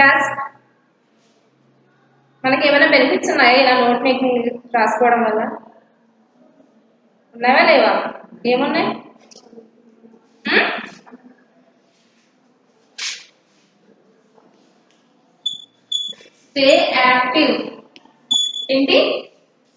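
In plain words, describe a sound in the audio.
A young woman speaks clearly and calmly, close by, in a slightly echoing room.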